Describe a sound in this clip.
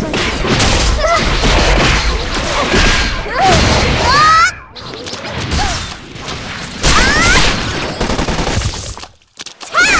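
Magic effects ring out with rising, sweeping tones.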